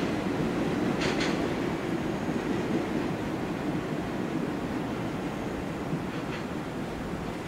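Train wheels clatter over rail joints and points.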